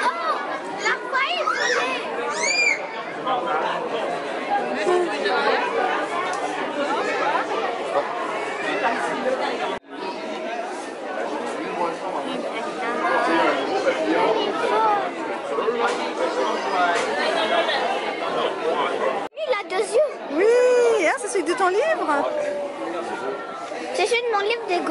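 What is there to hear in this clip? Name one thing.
Many people chatter and talk all around, close and far.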